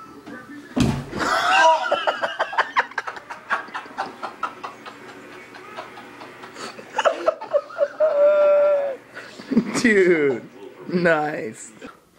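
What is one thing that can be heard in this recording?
Young men laugh loudly nearby.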